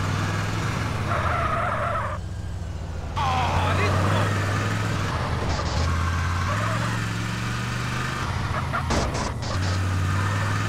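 Tyres screech on the road as a car turns sharply.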